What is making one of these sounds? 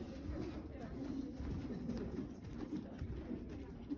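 Horse hooves thud softly on sand as a horse walks close by.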